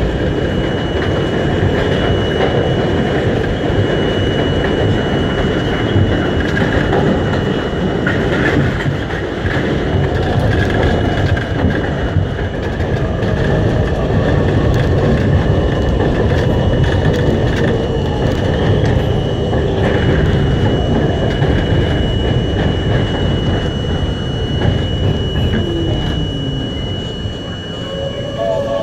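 A train rumbles and rattles steadily along the tracks.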